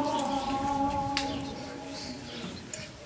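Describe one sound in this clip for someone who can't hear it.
A man sings softly close by.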